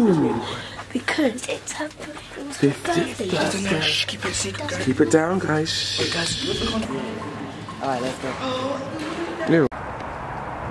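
A young boy talks and giggles close by with animation.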